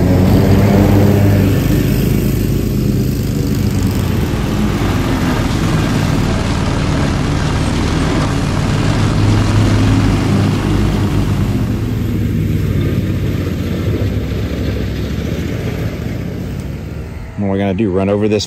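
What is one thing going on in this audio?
A riding mower's engine roars steadily as the blades cut grass.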